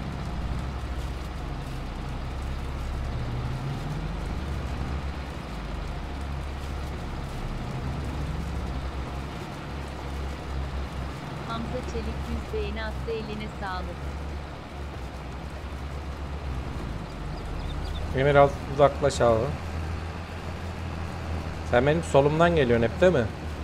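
Tractor engines rumble steadily.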